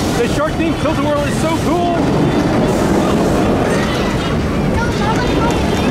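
An amusement ride rumbles and whirs as its cars spin around.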